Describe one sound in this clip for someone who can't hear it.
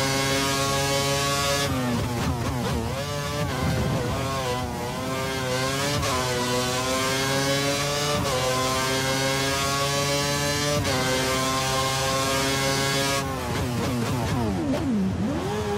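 A racing car engine screams at high revs, dropping in pitch on each downshift and rising again as it accelerates.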